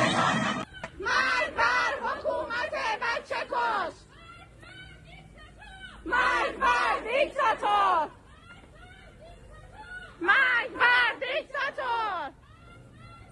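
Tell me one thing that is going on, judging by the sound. A group of young people chants in loud, rhythmic bursts close by.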